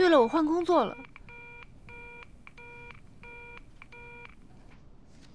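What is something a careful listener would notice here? A phone beeps repeatedly in short, even pulses.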